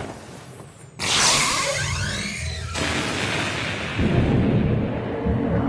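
A blast of energy bursts and crackles loudly against a wall.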